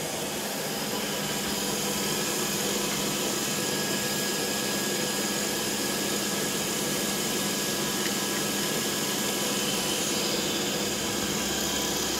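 A milling machine whirs steadily as its cutter shaves plastic.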